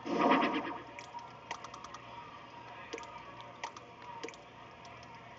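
Soft interface clicks and blips sound as items are moved and selected.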